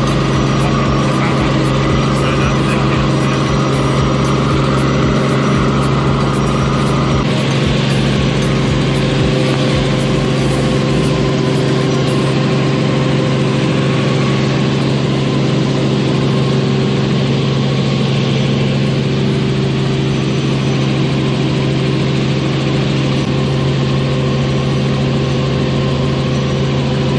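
A helicopter engine and rotor drone loudly and steadily from inside the cabin.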